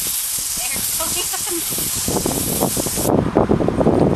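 An aerosol can sprays with a steady hiss close by.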